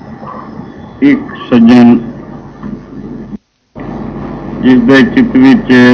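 An elderly man sings into a microphone.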